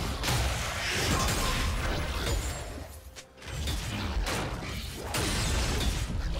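Game attack hits thud repeatedly.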